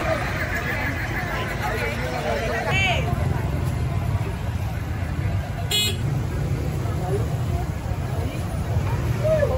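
A crowd chatters in a busy street outdoors.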